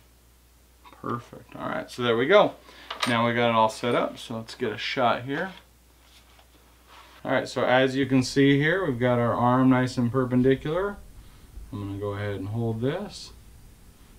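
A middle-aged man talks calmly and clearly, close by.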